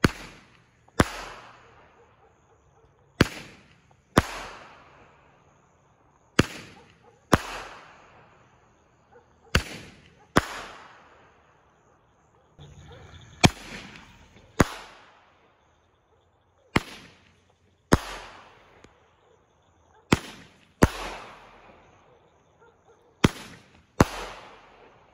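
Fireworks burst overhead with loud bangs.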